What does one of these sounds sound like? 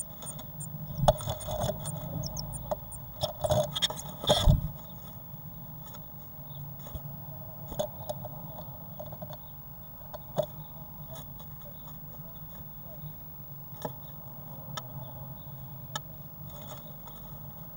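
A blue tit rustles and shuffles in nesting material inside a wooden nest box.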